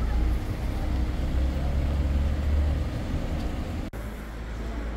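Wind rumbles and buffets outdoors.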